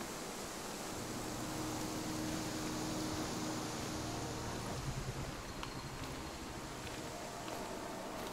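Wind blows steadily through trees.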